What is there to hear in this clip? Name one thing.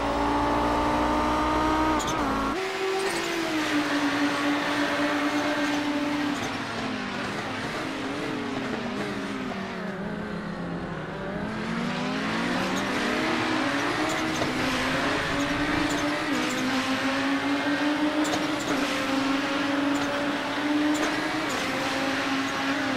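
Racing car engines roar and rise and fall in pitch as the cars speed along.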